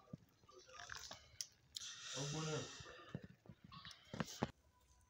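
Batter sizzles and crackles in a hot pan.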